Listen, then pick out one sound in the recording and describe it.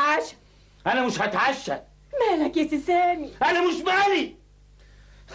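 An elderly woman speaks loudly and with agitation, close by.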